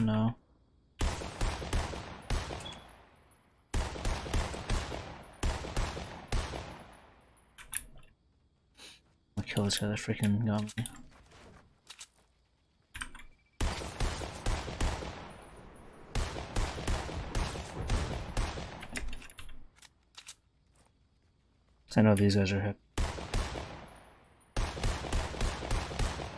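Rifle shots crack loudly, echoing after each one.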